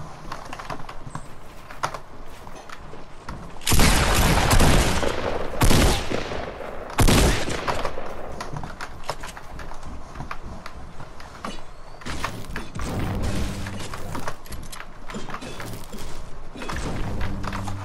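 Wooden walls and ramps snap into place with quick knocks.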